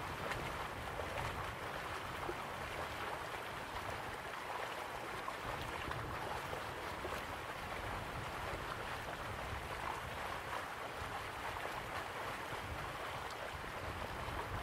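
A crowd murmurs softly outdoors.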